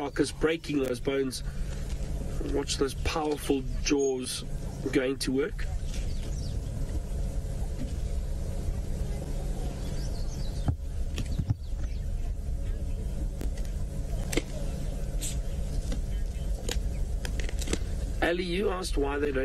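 A hyena tears and crunches at a carcass.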